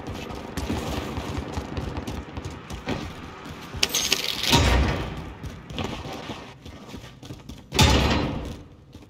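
Footsteps run quickly over gravel and concrete.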